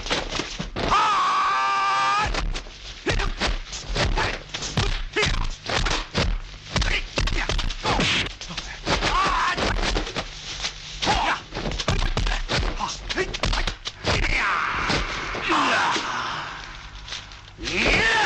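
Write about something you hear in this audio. A man shouts fiercely as he fights.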